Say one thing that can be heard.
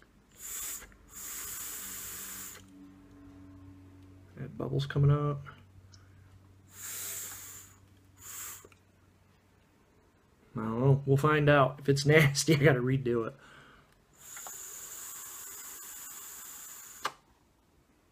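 An electronic cigarette sizzles and crackles as a man draws on it.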